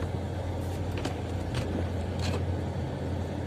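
A windshield wiper swipes across the glass.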